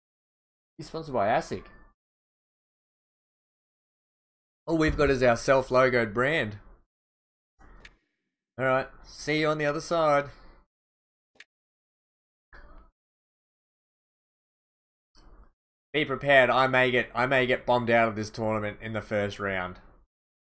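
A young man talks with animation into a close microphone, in bursts with pauses.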